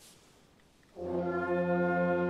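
A band begins to play.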